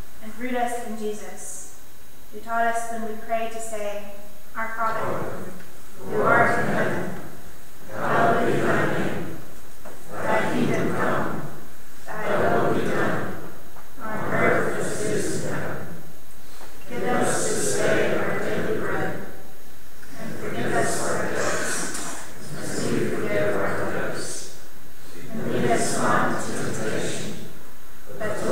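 A woman speaks steadily and calmly into a microphone in a large, echoing room.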